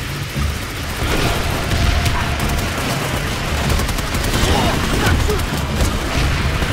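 Rapid gunfire bursts out close by.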